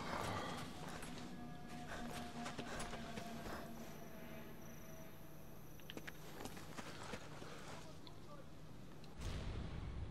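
Footsteps crunch quickly over gravel and stone.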